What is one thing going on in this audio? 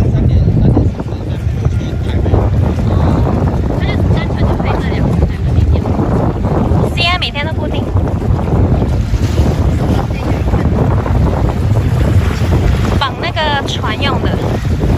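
Wind rumbles loudly across the microphone out on open water.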